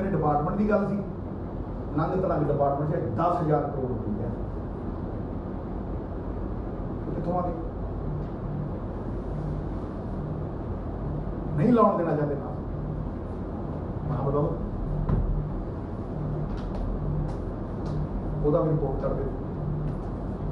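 A man speaks calmly into nearby microphones, with pauses.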